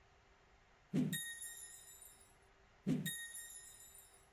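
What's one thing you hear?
A short bright chime rings out as game tiles clear.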